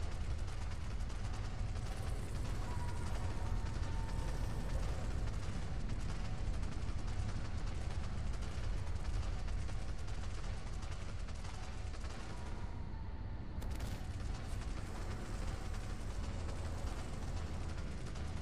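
A creature's footsteps thud on rock.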